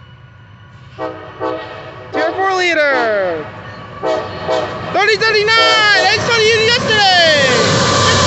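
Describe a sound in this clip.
A freight train horn blasts loudly several times as the train approaches.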